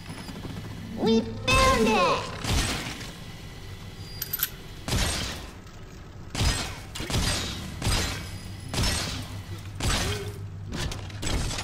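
Loud bangs and blasts go off repeatedly.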